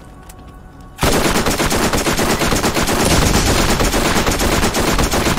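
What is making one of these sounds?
An electric weapon crackles and zaps loudly.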